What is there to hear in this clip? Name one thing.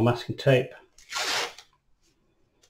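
Adhesive tape rips off a roll.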